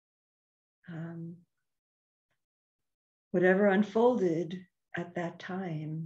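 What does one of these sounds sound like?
An older woman speaks calmly and slowly into a microphone over an online call.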